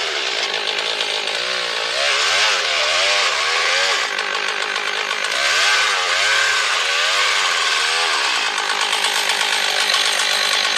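A chainsaw roars loudly, cutting through wood and revving up and down.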